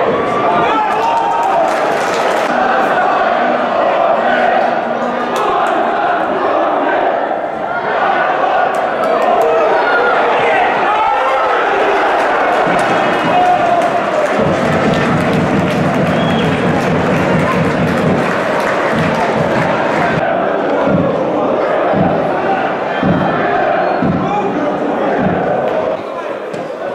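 A crowd of spectators murmurs and shouts in an open stadium.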